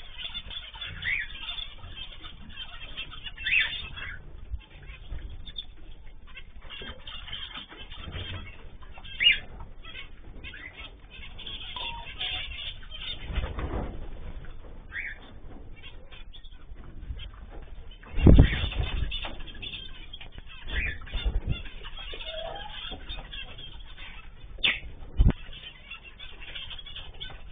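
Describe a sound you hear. Small birds chirp and squawk in short bursts.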